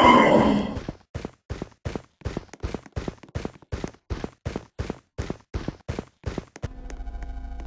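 Footsteps tap quickly and evenly on the ground.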